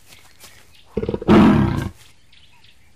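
A tiger growls loudly.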